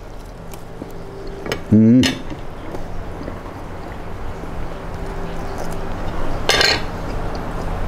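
A young man chews food with his mouth closed.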